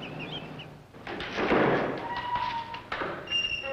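Large wooden doors creak open.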